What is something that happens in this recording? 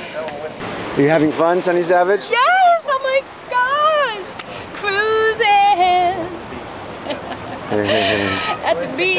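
A young woman talks excitedly and laughs close by.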